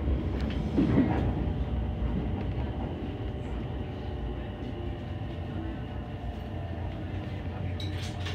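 Train wheels click and squeal over the rails.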